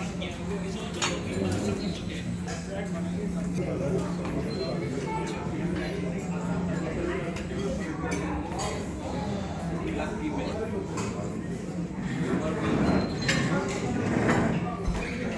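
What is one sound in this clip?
Metal serving utensils clink against dishes.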